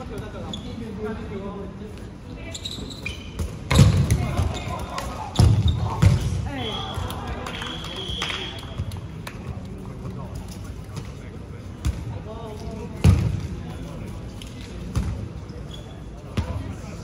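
Young men shout and call out to each other.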